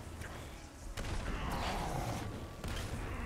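An explosion booms and debris scatters.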